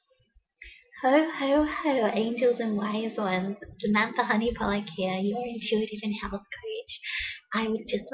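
A young woman speaks cheerfully and warmly, close to the microphone.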